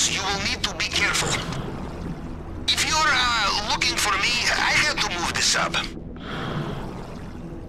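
A diver swims underwater with muffled swishing.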